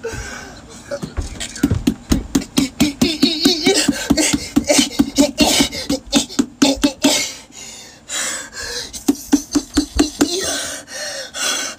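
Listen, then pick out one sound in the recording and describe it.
A young man punches a pumpkin with rapid, hollow thuds.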